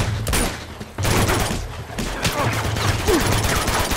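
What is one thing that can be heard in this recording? A punch lands on a body with a dull thud.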